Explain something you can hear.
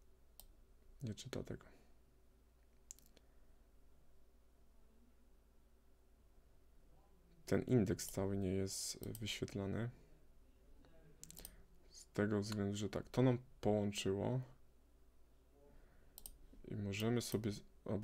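A man speaks calmly and close to a microphone, in short bursts.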